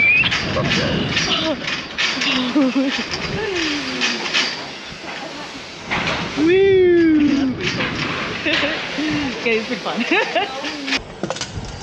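Wind rushes past a swinging ride.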